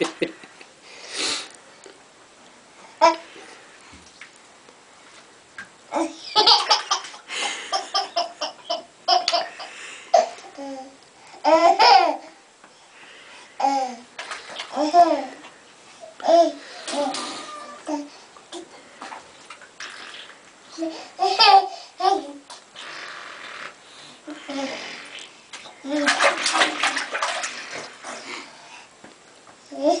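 A toddler babbles and squeals close by.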